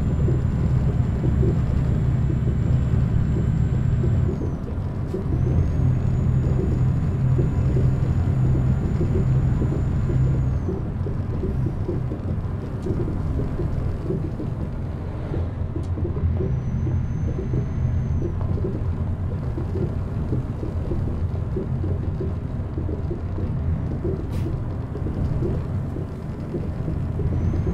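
Tyres crunch over snow.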